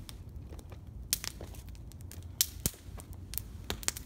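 Footsteps crunch on loose stones.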